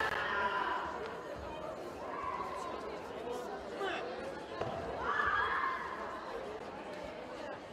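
Karate fighters shout sharply in a large echoing hall.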